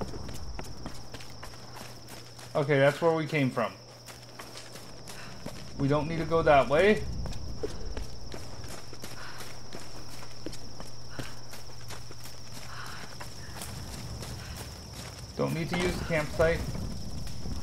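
Footsteps crunch steadily on rough forest ground.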